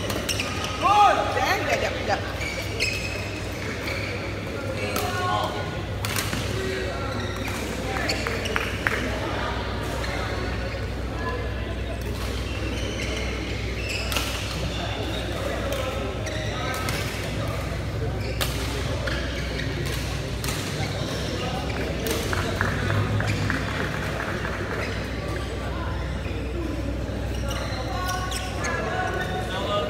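Men talk and call out in the echoing hall.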